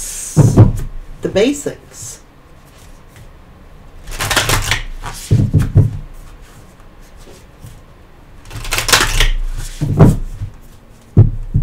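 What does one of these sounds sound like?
Playing cards rustle and riffle as they are shuffled.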